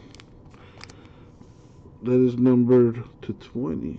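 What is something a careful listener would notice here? A trading card is flipped over in the hands.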